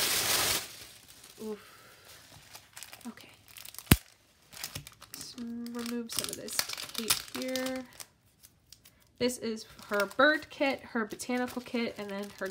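Paper sheets rustle as they are handled.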